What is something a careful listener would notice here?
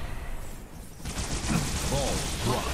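A weapon fires rapid shots.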